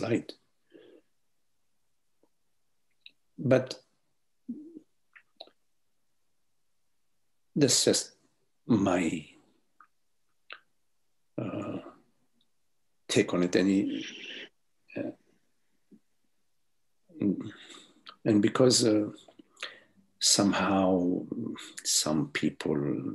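An elderly man speaks calmly, with pauses, through an online call.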